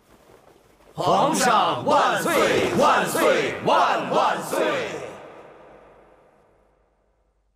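A crowd of men chant loudly in unison, echoing in a large hall.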